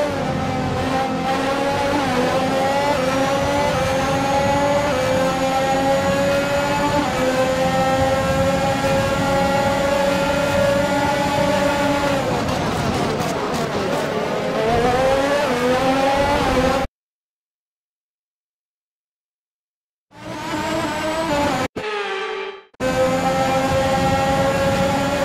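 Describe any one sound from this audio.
A racing car engine screams at high revs, shifting gears up and down.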